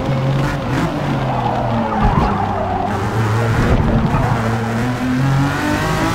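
Tyres screech through a corner.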